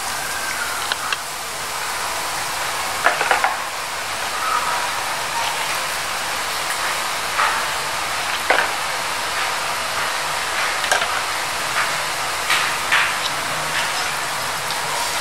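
Batter drips into hot oil, which sizzles and crackles steadily.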